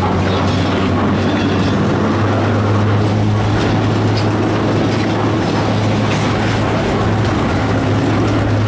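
A chairlift hums and rumbles steadily as it moves along its cable.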